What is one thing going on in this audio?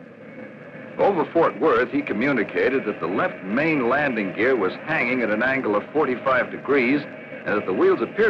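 A man speaks calmly through a radio microphone.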